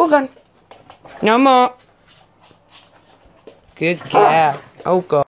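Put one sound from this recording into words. A small dog whines and yaps close by in short, high bursts.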